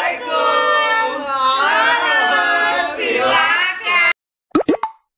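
Young men and a young woman sing and call out together with animation, close by.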